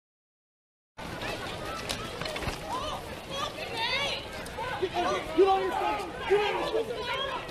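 Several men shout commands at close range outdoors.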